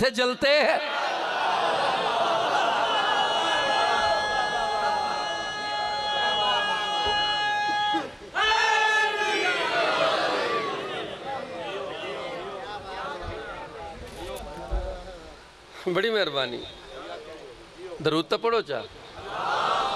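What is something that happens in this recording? A crowd of men cries out together.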